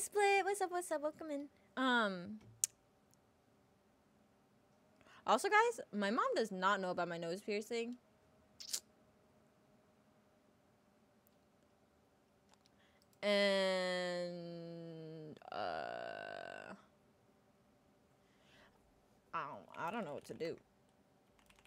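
A young woman talks casually into a close microphone, in short bursts.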